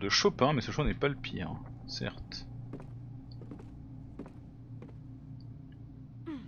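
Footsteps tap softly on a wooden floor.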